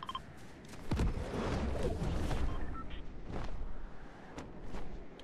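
Wind rushes as a glider swoops through the air.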